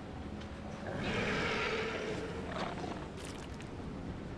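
A large beast growls low and loud.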